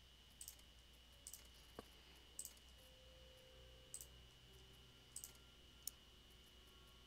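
Soft menu clicks tick as options change.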